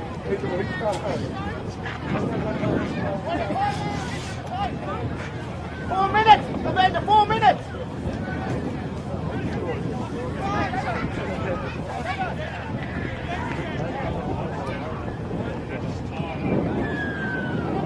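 Young women shout and call out to each other outdoors, some distance away.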